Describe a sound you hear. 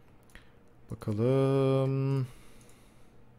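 A young man lets out a long, drawn-out vocal sound close to a microphone.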